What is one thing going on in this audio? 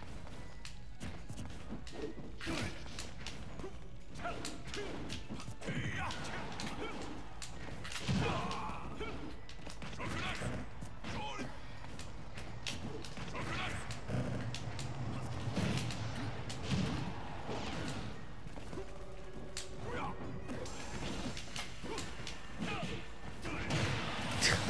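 Video game fighters land hits with sharp thuds and whooshes.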